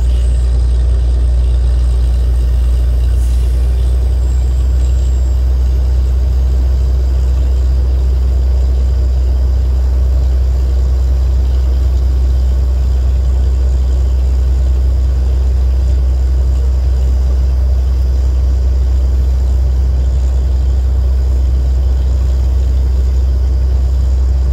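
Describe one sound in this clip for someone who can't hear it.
A drilling rig's engine rumbles loudly and steadily outdoors.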